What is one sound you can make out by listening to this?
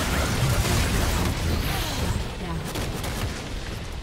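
Magic blasts and weapon hits clash in a fast fight.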